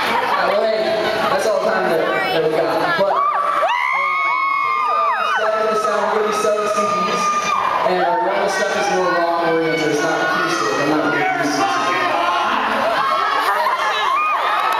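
A young man sings into a microphone over loud amplified sound.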